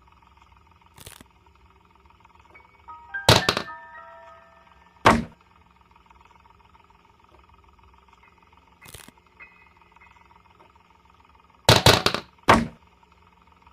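Wooden planks knock and thud as they are dropped and placed.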